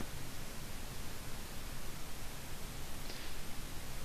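A cable plug clicks into a small box.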